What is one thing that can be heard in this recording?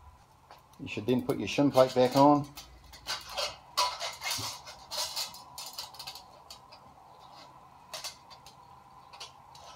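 A metal gasket scrapes and clinks against a steel flange.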